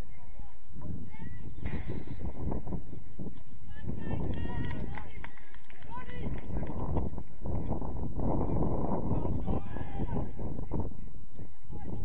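Young men shout to each other across an outdoor pitch, some way off.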